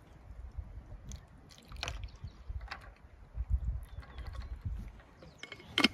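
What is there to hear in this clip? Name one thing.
Liquid pours over ice into a metal cup.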